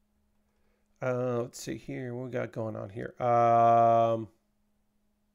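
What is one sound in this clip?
A man speaks with animation into a close microphone, drawing out his words.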